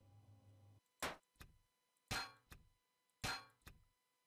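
A game block snaps into place with a sharp synthetic thud, several times.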